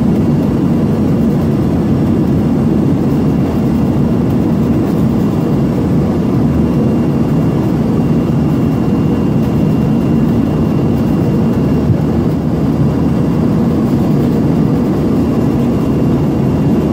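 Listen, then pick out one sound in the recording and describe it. A steady roar of rear-mounted turbofan engines and air rushing past fills the cabin of a regional jet in cruise.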